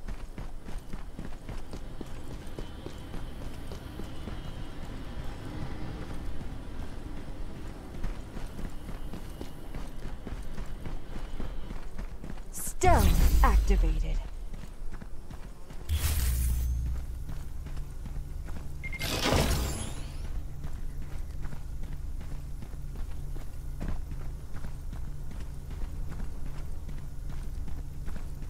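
Footsteps run over dry grass.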